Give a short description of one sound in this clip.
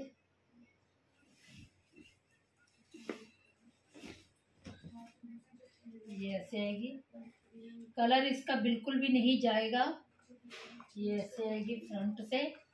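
Cloth rustles as it is unfolded and spread out.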